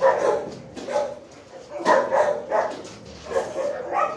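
A dog pants heavily close by.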